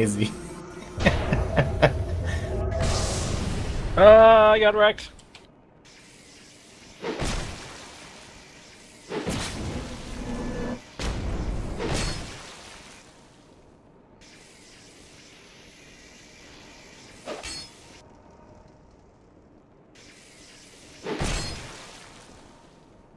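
A heavy sword swings and strikes with loud thuds, again and again.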